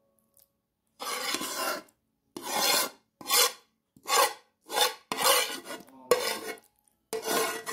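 A spoon scrapes a thick wet mixture out of a metal bowl in short bursts.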